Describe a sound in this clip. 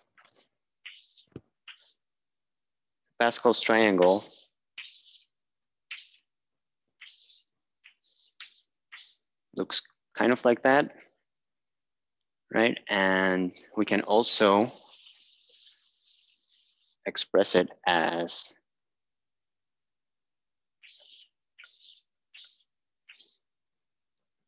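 Chalk scratches and taps on a chalkboard in short bursts.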